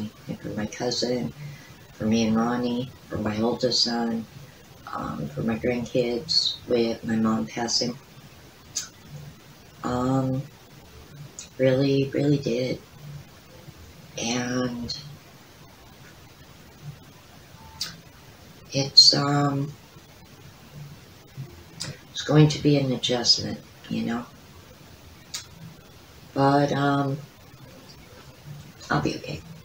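An older woman speaks calmly and close by, with pauses.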